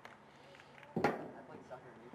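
A soccer ball is kicked with a sharp thud.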